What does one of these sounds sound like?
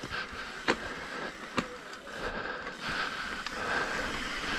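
A bicycle rattles and clacks over bumps.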